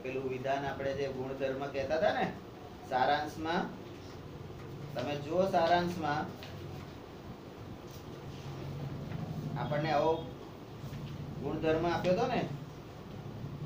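A middle-aged man speaks calmly nearby, in short bursts with pauses.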